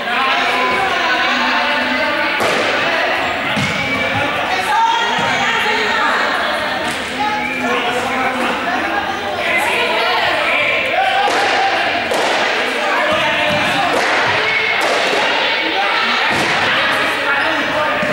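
Young people shout and call out in a large echoing gym.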